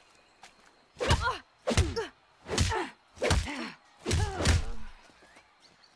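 A young woman cries out and groans in pain again and again.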